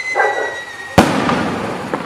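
A firework bursts with a sharp, loud bang.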